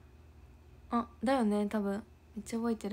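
A young woman speaks briefly, close to a microphone.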